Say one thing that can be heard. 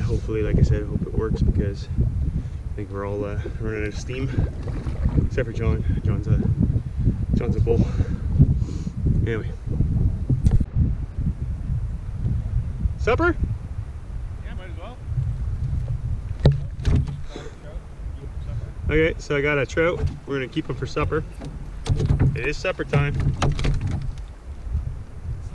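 A man talks calmly and cheerfully, close to the microphone, outdoors.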